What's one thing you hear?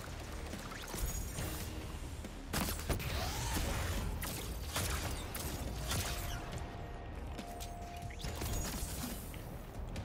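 Gunshots and blasts ring out in a video game.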